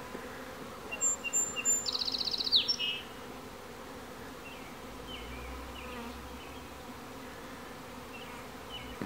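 Bees hum softly around a hive.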